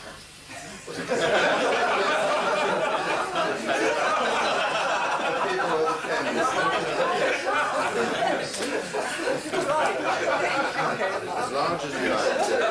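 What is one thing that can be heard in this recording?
A group of people chatter and laugh in a room.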